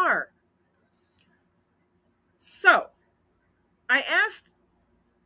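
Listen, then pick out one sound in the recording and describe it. An older woman speaks with animation into a nearby microphone, in short bursts.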